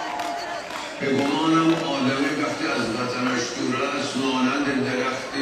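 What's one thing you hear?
A man sings through loudspeakers in a big echoing hall.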